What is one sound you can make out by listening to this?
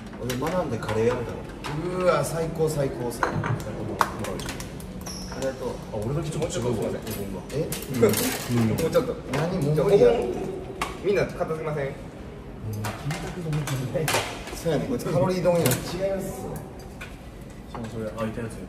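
Young men talk and chat casually around a table.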